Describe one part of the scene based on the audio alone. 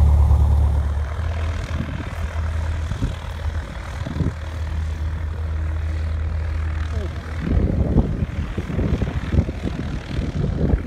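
A small plane's engine hums at a distance outdoors.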